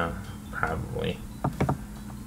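A young man speaks quietly into a nearby microphone.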